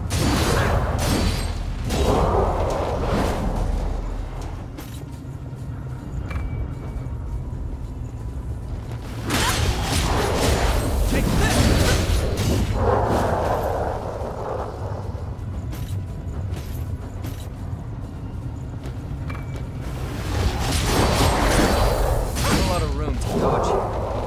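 Heavy blades swing and slash in a fight.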